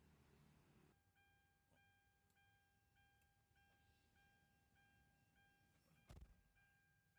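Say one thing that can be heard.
A car's warning chime beeps rapidly and steadily.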